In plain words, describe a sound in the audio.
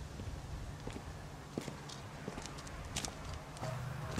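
Footsteps crunch on a road.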